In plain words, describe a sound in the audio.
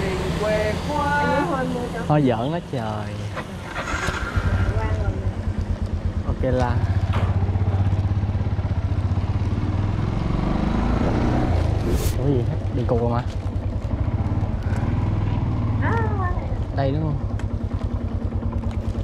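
A motorbike engine hums steadily at close range.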